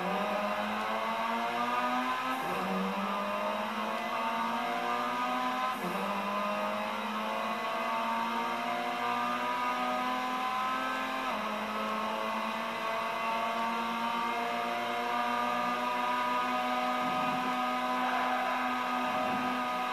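A racing car engine revs high, rising in pitch and dropping sharply at each gear change.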